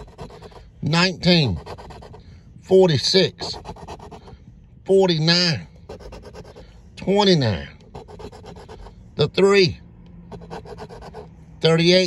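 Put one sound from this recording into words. A coin scratches rapidly across a paper card.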